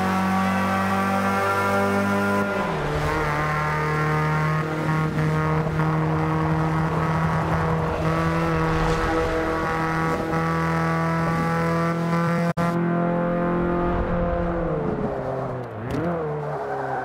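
A car engine roars steadily at high revs, dropping in pitch as the gears shift.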